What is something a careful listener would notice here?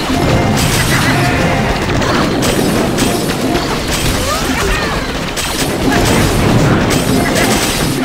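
Lasers zap in bursts.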